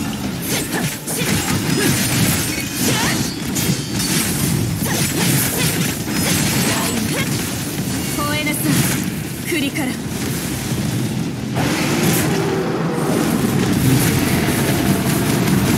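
Electric crackling zaps sharply.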